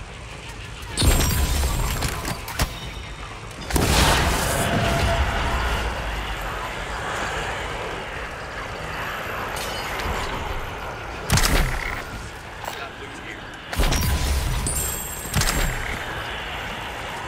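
Loud blasts and crashing bursts erupt several times.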